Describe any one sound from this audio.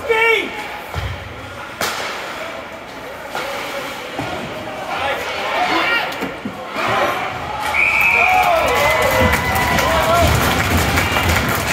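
Spectators shout and cheer in an echoing rink.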